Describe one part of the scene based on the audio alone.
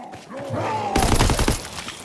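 A zombie snarls up close.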